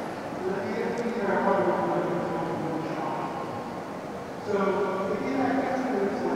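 A man speaks calmly into a microphone over loudspeakers in a large echoing hall.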